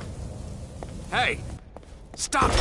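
A man shouts out loudly.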